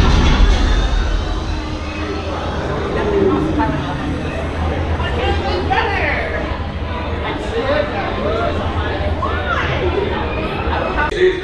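A crowd of people chatters around, heard close by in an echoing passage.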